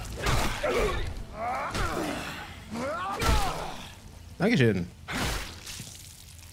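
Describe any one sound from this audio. A metal pipe strikes flesh with heavy, wet thuds.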